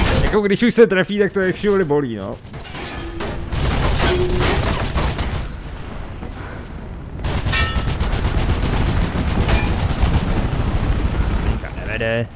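Footsteps run across metal scaffolding.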